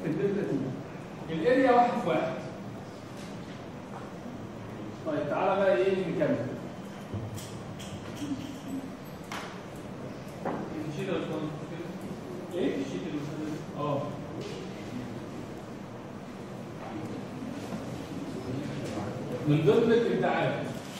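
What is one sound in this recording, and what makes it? A young man lectures nearby, speaking with energy.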